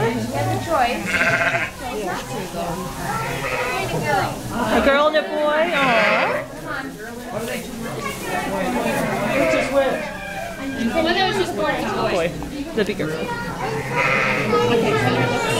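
A newborn lamb bleats.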